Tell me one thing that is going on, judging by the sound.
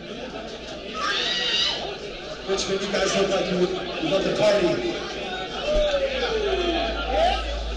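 A man shouts into a microphone over a loudspeaker.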